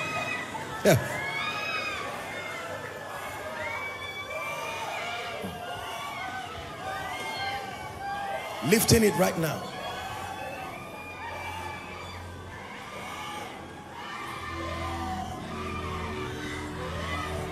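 A crowd of men and women pray and call out together in a large echoing hall.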